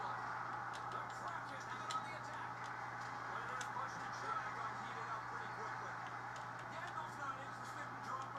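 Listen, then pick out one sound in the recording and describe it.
Hockey sticks click sharply against a puck.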